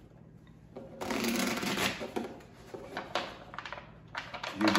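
Playing cards shuffle and rustle.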